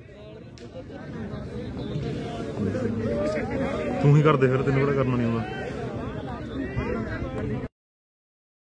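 Several men cheer and chatter at a distance.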